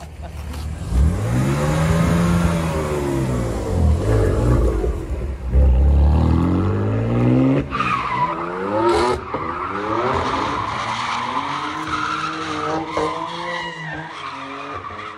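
A car engine revs hard, rising and falling.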